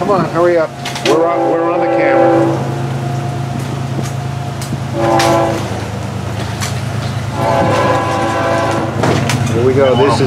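A diesel locomotive horn blows in long blasts in the distance.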